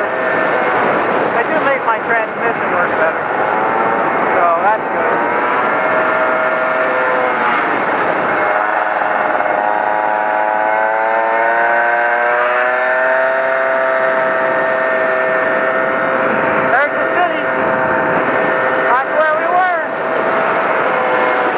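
A motorcycle engine hums steadily, its pitch rising and falling as the rider shifts and accelerates.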